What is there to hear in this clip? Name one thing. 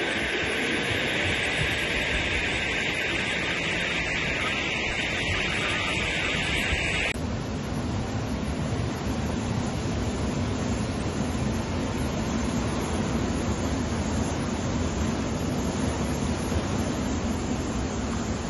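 Floodwater rushes and roars loudly over a low crossing.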